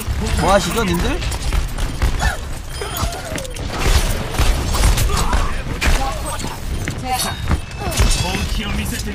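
Gunshots and game effects crack and thump from a video game.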